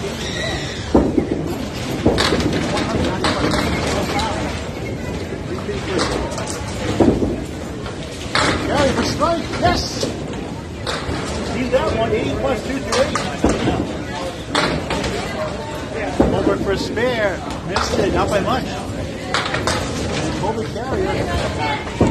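Men talk in the background of a large echoing hall.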